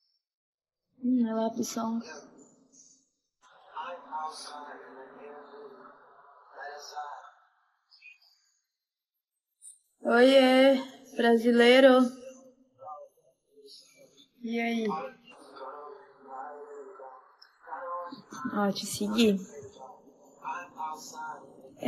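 A young woman talks casually and with animation, close to a phone microphone.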